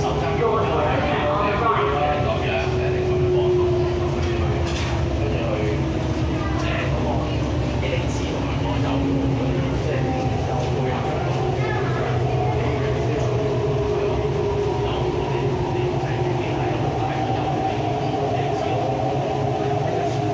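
An electric commuter train hums and rumbles along the track, heard from inside the carriage.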